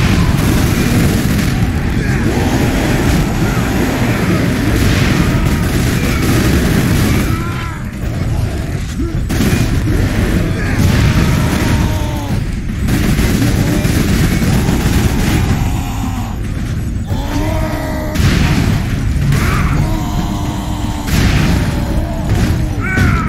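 Heavy gunfire blasts rapidly and continuously.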